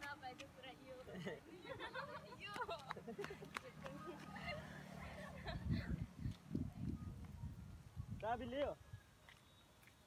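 Young women laugh nearby.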